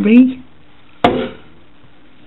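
A plastic connector clicks into place.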